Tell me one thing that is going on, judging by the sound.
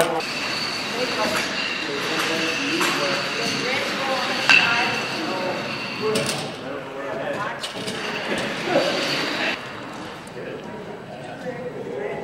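Elderly men talk quietly in an echoing hall.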